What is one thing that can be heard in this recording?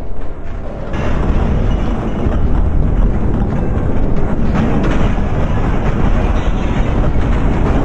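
A tall tower collapses with a rumbling crash.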